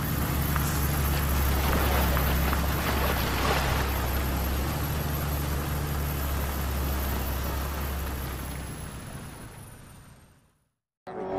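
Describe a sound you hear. A heavy truck engine rumbles low and steadily.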